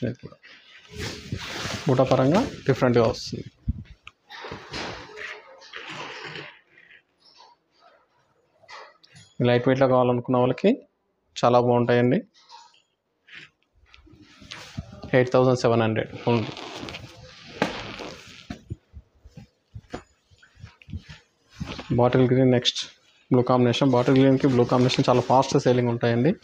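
Silk fabric rustles as it is unfolded and handled.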